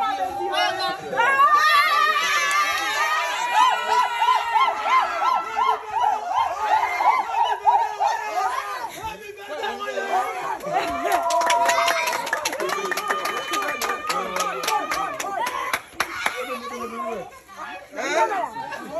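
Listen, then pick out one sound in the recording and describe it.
A group of men and women sing together loudly and close by.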